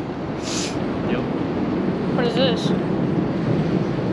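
A boy speaks briefly close by.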